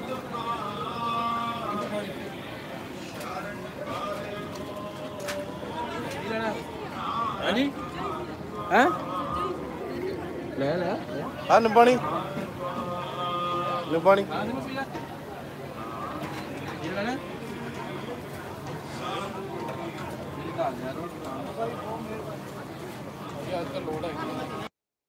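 Several men talk in a crowd outdoors.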